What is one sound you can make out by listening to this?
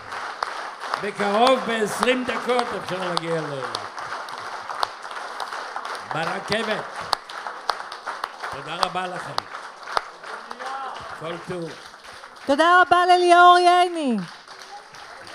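An elderly man sings into a microphone in long, wavering notes, heard over loudspeakers in a large hall.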